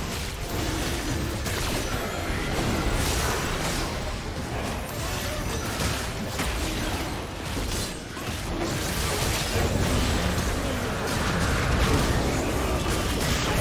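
Game spells and attacks crackle and boom in a fast battle.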